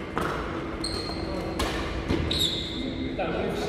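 Sneakers squeak briefly on the court floor.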